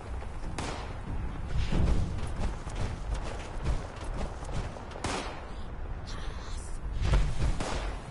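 Heavy armoured footsteps thud on rough ground.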